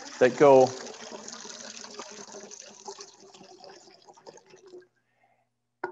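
Water pours and splashes into a bowl.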